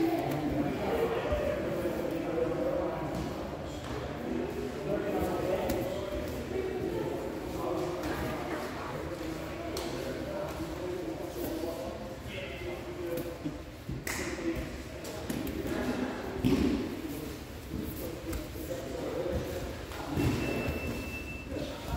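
Bodies shuffle and thump on floor mats as two people grapple.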